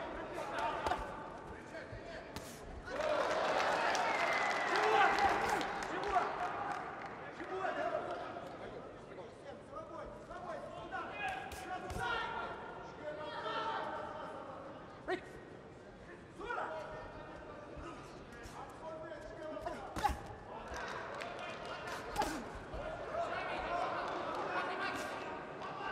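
Boxing gloves thud against a body.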